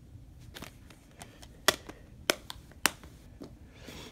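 A plastic case is set down on carpet.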